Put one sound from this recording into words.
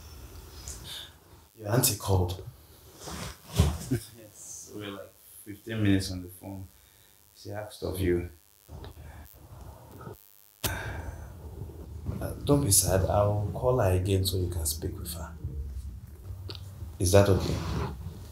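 A man speaks calmly and closely.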